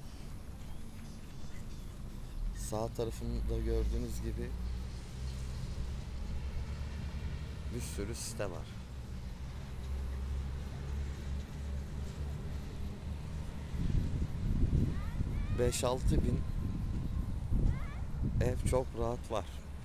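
Wind buffets and rumbles outdoors.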